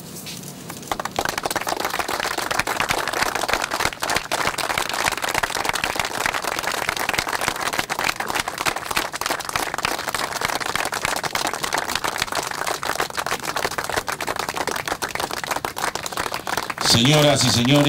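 A crowd applauds steadily outdoors.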